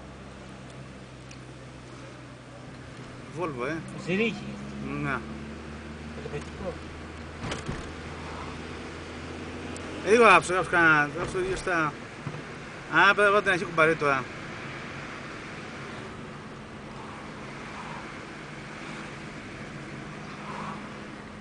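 A car engine hums from inside the car while driving along a road.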